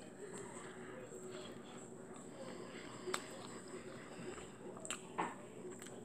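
A young boy chews food close to the microphone.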